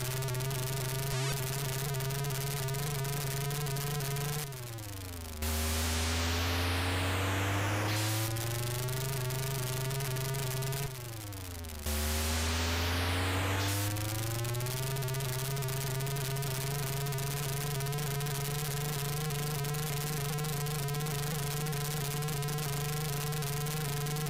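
A video game car engine buzzes steadily and drops in pitch, then rises again as it speeds up.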